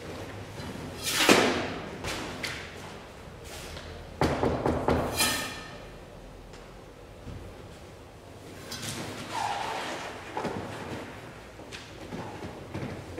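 A man speaks loudly and dramatically in an echoing hall.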